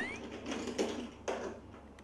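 Felt-tip pens rattle in a plastic box.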